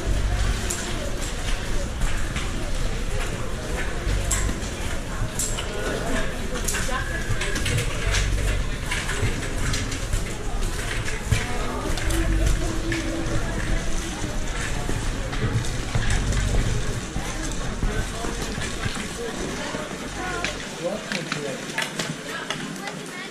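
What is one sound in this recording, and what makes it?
Footsteps clack on a hard floor.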